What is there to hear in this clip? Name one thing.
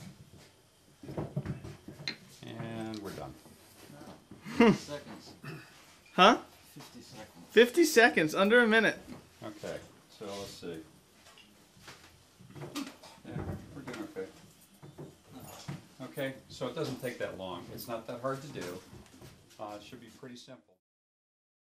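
An older man talks calmly to a small group indoors.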